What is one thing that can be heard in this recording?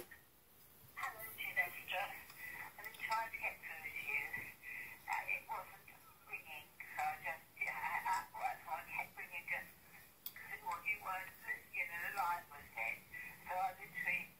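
A middle-aged woman talks steadily through a small phone speaker.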